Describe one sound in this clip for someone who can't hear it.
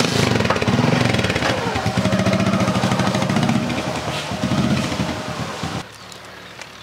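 A motorcycle engine idles and revs nearby.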